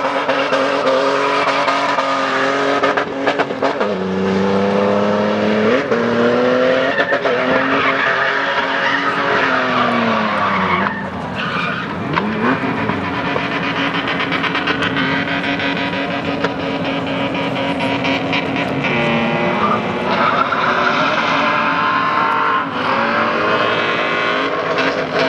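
A car engine revs hard and roars, rising and falling in pitch.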